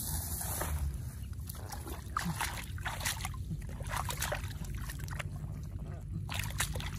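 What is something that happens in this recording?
Hands splash and slosh in shallow muddy water.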